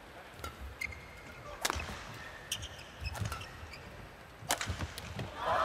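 Rackets strike a shuttlecock in sharp smacks.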